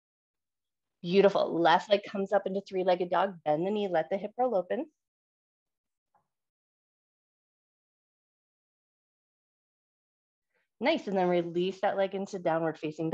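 A woman gives calm instructions through a microphone on an online call.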